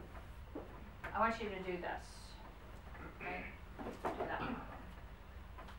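A woman speaks clearly in a room.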